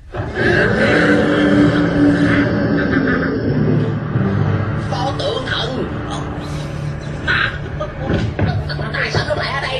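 A man screams in fright.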